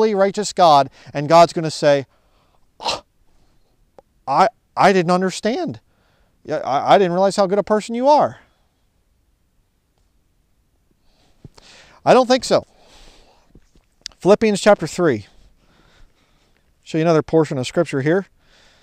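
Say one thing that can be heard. A man speaks close by, calmly and with pauses, outdoors.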